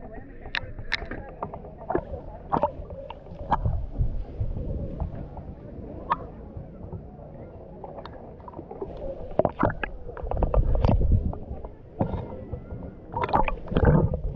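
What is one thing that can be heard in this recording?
Water laps and splashes close by.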